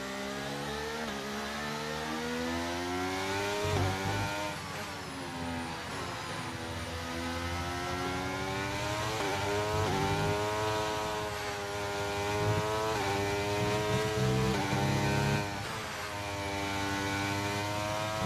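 A racing car engine whines loudly, rising in pitch and dropping sharply with each gear change.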